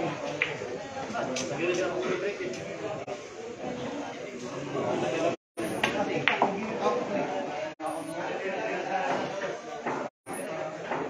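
Men chat in the background.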